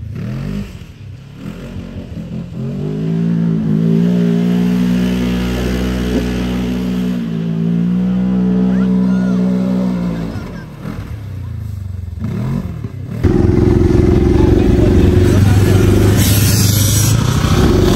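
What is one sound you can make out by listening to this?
An off-road buggy engine roars and revs.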